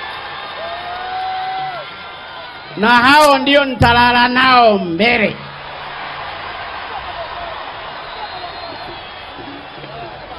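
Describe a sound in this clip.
A large outdoor crowd cheers and murmurs.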